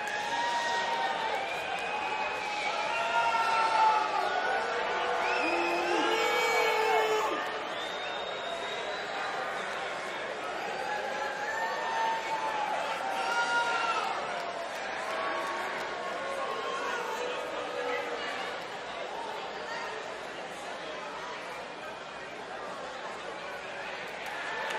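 A crowd cheers and whistles in a large open venue.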